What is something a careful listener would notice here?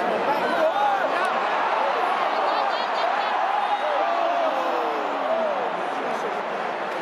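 A large crowd sings loudly, with voices rising and falling.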